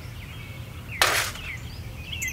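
A small metal cup clinks as it is set down.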